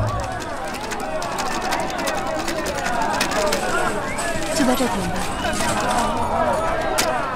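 A crowd of men and women chatters busily outdoors.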